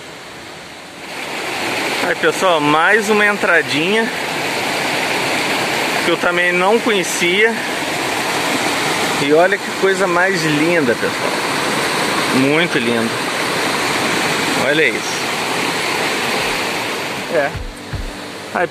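A stream rushes loudly over rocks.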